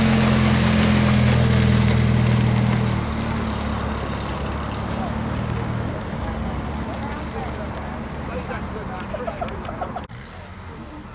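A small vintage saloon car engine pulls away and drives off.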